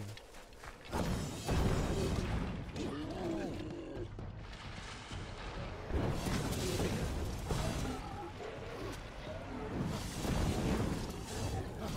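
Weapons clash and spells burst loudly in a fight.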